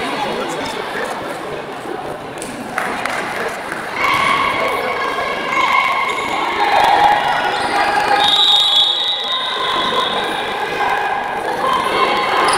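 Young women players call out to each other across the court.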